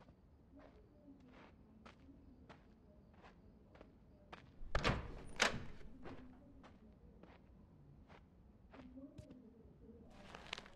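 Footsteps thud softly on a wooden floor at a steady walking pace.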